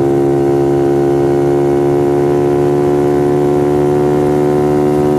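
A motorcycle engine roars loudly at high, steady revs close by.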